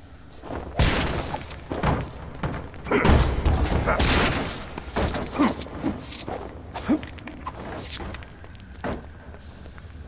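Toy bricks clatter and scatter as objects are smashed apart.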